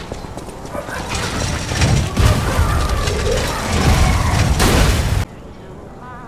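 Metal weapons clash and thud in a fight.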